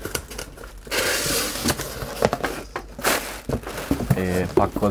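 Plastic air cushions crinkle and rustle.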